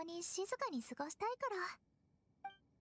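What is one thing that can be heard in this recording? A young woman speaks softly and sweetly.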